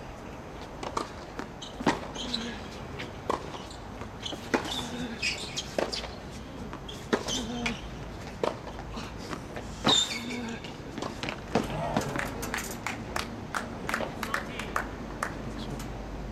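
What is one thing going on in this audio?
Tennis balls are struck with sharp pops, outdoors.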